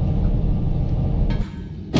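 A sudden magical whoosh bursts out, then cuts off.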